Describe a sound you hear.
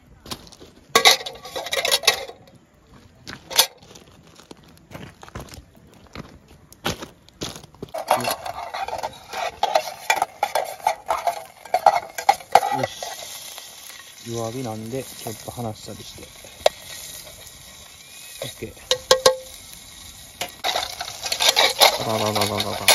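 A metal pot clanks against a metal grill.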